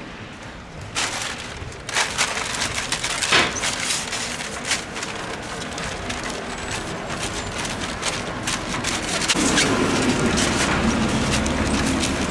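A cloth rubs and squeaks against window glass.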